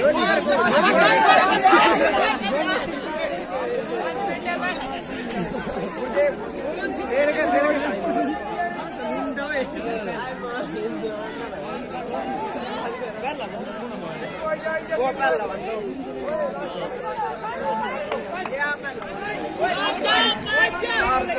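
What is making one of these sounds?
Young men talk and call out nearby.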